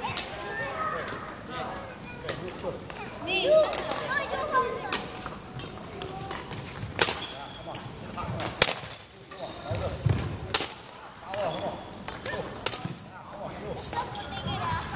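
Children's voices chatter and call out in a large echoing hall.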